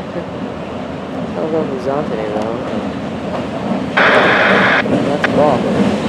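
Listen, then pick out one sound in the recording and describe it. Diesel locomotives rumble as a freight train approaches.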